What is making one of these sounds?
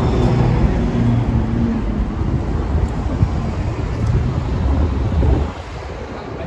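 Shoes step on a stone pavement close by.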